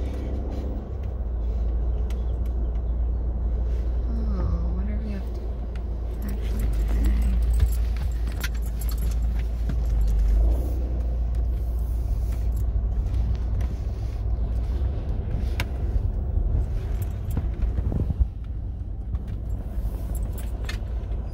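A car engine hums low and steady while the car rolls slowly.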